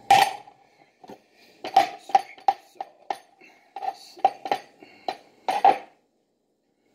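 A knife cuts through soft food on a cutting board.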